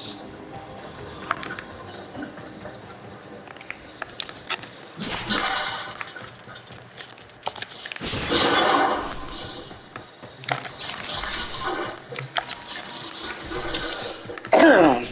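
A game character's footsteps clank on metal floors.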